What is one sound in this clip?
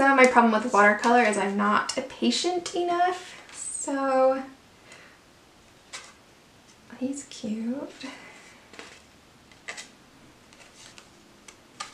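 Stiff paper cards slide and rustle against each other.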